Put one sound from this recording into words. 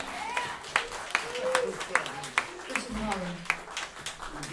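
A man claps his hands in a steady beat.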